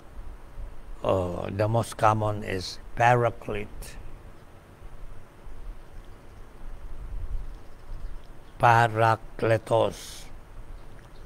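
An elderly man speaks calmly and slowly, close by, with pauses.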